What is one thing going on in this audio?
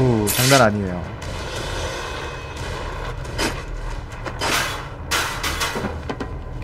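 A metal grate clangs as it is kicked loose.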